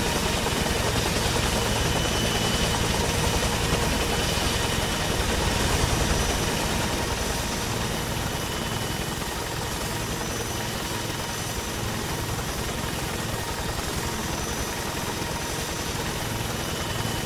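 Wind rushes past an open helicopter door.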